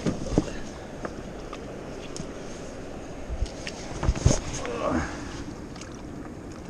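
Hands rub and bump against a rough surface close by, with occasional knocks.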